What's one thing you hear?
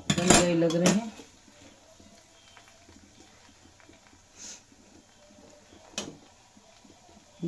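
A metal spatula scrapes and stirs food in a metal pan.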